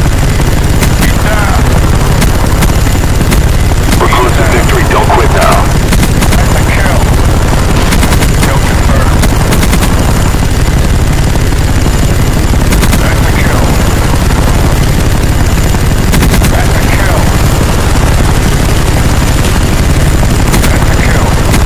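A heavy machine gun fires in bursts.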